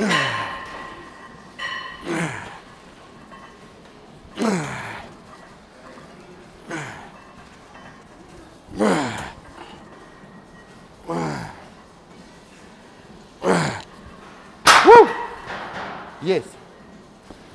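A man exhales sharply with each pull of the weights.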